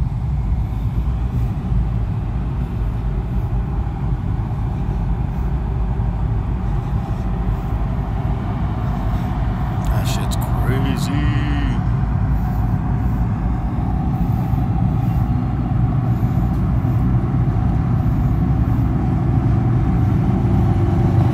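Road noise rumbles inside a car moving on a highway.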